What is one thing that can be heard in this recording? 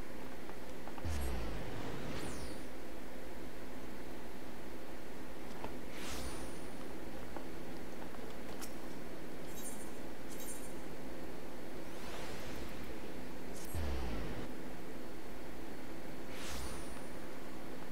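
A deep magical whoosh sweeps down several times.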